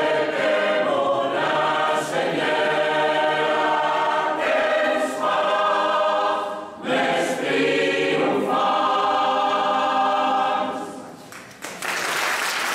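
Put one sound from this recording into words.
A large mixed choir sings in harmony outdoors.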